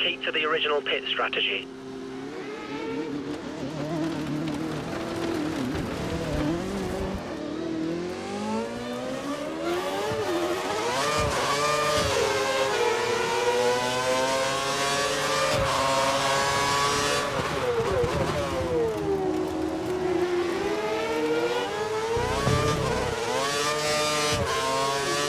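A racing car engine whines loudly, revving up and down through the gears.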